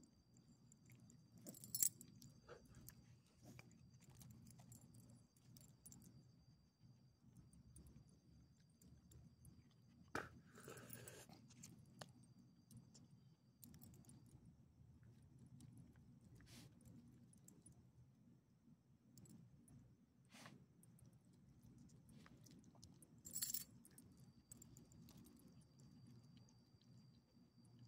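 Small dogs sniff and snuffle close by.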